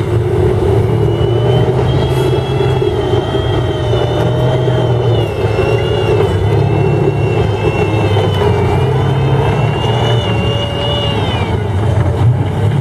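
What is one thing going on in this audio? A tank's metal tracks squeal with a high, wavering whine.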